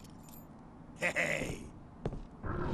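A man speaks gruffly.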